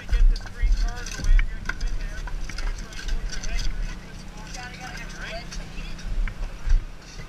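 Metal clanks as rescue tools work on a car.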